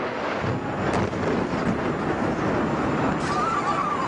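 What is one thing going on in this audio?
A fireball explodes with a deep roar.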